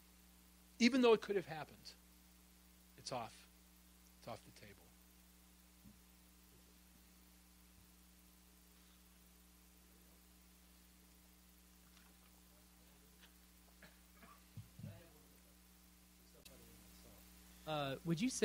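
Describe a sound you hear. A man in the audience asks questions from a distance.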